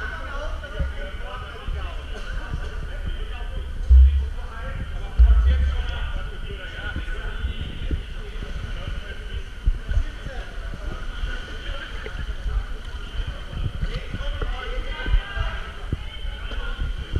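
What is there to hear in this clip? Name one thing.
Young men talk and call out, echoing in the hall.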